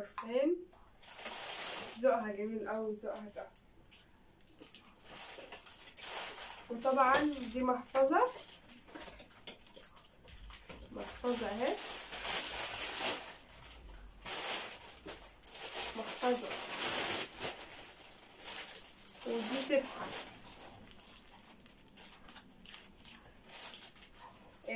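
Plastic wrapping crinkles and rustles as items are unpacked.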